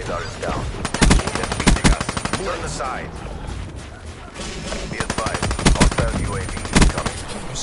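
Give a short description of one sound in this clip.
Rapid gunfire rattles in sharp bursts.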